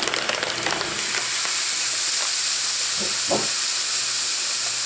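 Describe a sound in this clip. Air hisses steadily into a plastic bag.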